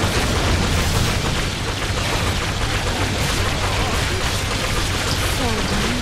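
Magic blasts and weapons clash in a fast video game battle.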